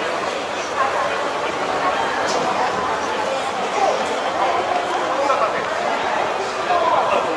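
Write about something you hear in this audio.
Many voices of men and women murmur and chatter in a large, echoing hall.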